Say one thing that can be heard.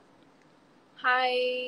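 A young woman sings a steady high note close by.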